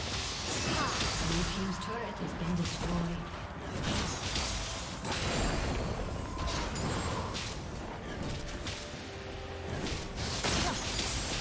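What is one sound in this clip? Magic spells whoosh and crackle in a busy video game fight.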